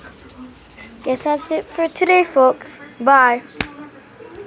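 A young child speaks excitedly close to the microphone.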